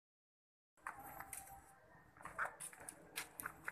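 A walking stick taps on stone.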